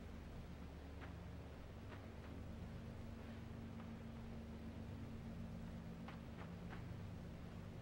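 Light footsteps patter softly on a hard surface.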